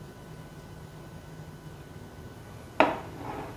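A ceramic plate is set down on a wooden table with a knock.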